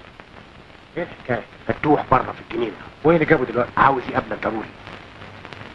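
A man speaks sharply and with agitation, close by.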